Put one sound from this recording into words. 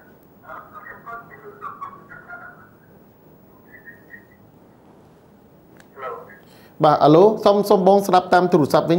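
A man speaks into a microphone, first faintly and then loudly.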